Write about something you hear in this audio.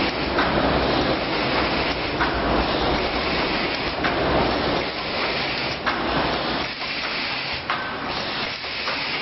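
Machine parts click and knock rhythmically.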